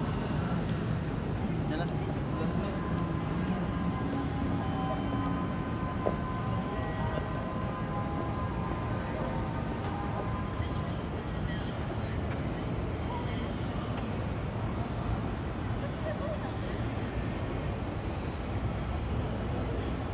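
A busy outdoor crowd murmurs with a steady hum of city noise.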